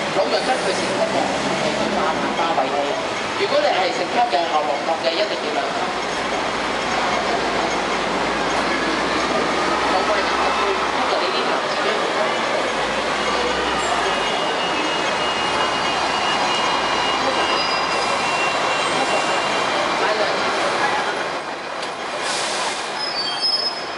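A bus engine rumbles as it passes close by.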